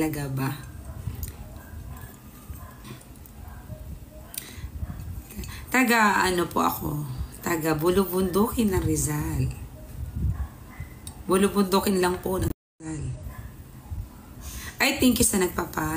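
A woman talks calmly and close by, in pauses.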